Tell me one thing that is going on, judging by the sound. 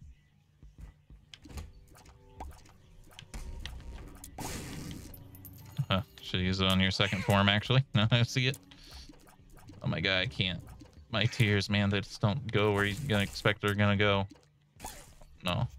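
Game sound effects pop and squelch.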